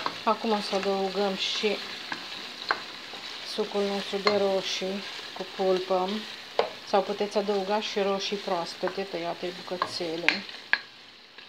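A wooden spoon scrapes and stirs food in a pot.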